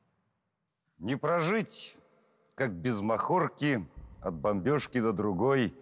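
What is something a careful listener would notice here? A middle-aged man speaks calmly and expressively close to a microphone.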